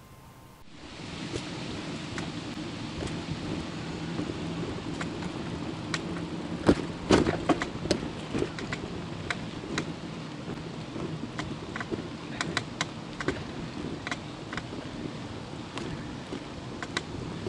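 Small bumps rattle the bicycle as it rides along.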